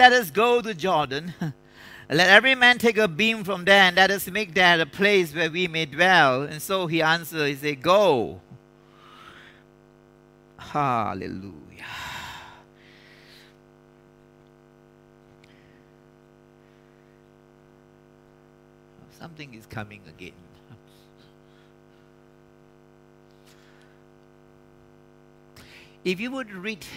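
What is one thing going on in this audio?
A man preaches with animation into a microphone, pausing at times.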